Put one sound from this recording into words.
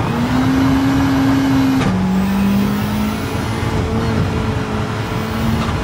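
A rally car engine revs hard, dropping in pitch as it shifts up a gear.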